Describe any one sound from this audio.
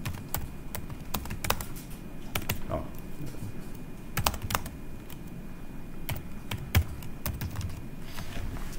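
Keys clack on a keyboard in short bursts of typing.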